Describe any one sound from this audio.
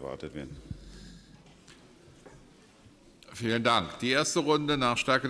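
A man speaks steadily into a microphone in a large hall.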